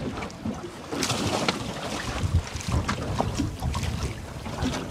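Water splashes loudly as a diver drops into the sea.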